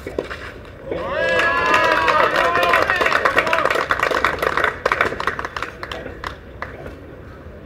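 Spectators applaud nearby outdoors.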